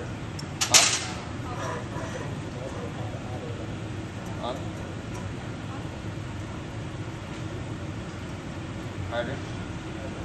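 Metal tools clink sharply against metal.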